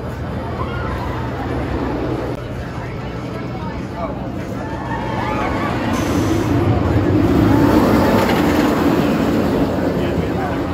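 A roller coaster train rumbles and clatters along a wooden track.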